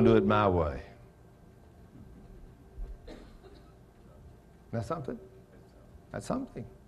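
An elderly man speaks calmly through a microphone, with pauses.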